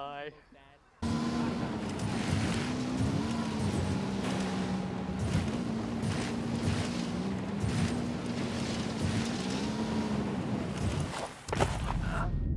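A motorcycle engine roars and revs steadily.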